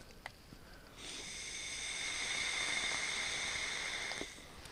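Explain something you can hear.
A man draws steadily on a pipe with a soft airy hiss.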